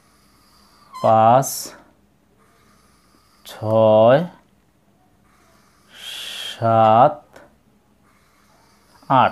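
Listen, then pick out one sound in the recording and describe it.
A man speaks in short, drawn-out phrases nearby.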